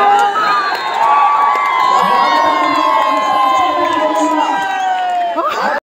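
Men whistle shrilly in a cheering crowd.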